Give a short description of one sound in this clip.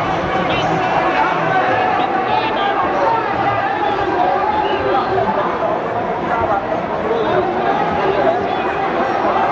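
A huge crowd chants and roars from below, heard from high above outdoors.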